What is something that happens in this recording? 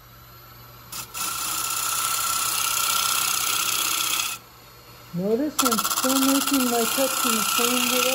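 A chisel shaves wood on a spinning lathe with a loud hissing scrape.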